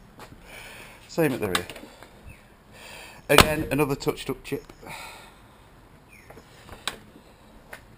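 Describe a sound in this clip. A car door handle clicks as it is pulled.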